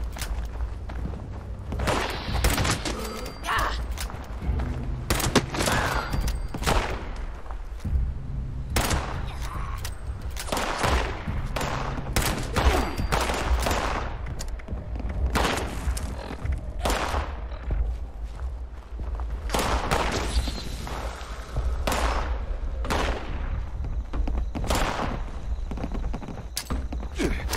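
Pistol shots ring out sharply, again and again.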